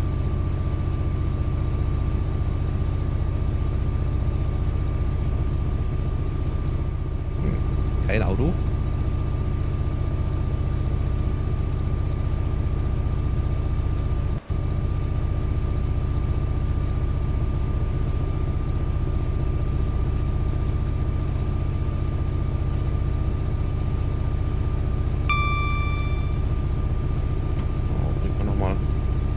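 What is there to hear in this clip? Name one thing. Train wheels rattle over the rails.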